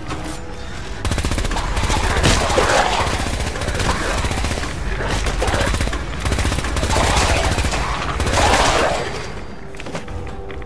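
A heavy gun fires in rapid, steady bursts.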